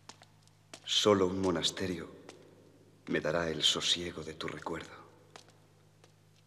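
A young woman reads aloud calmly.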